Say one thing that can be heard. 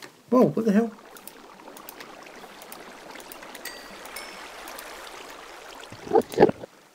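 Water trickles and flows steadily.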